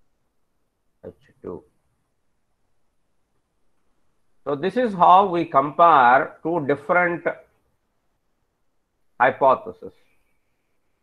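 A man speaks calmly through an online call microphone, in short bursts with pauses.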